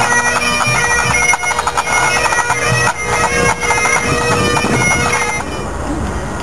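Bagpipes play a droning tune outdoors.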